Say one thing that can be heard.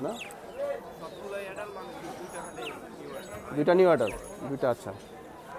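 Budgies chirp and warble close by.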